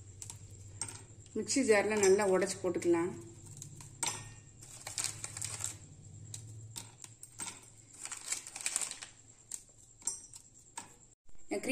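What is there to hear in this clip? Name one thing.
Crisp biscuits snap and crack apart.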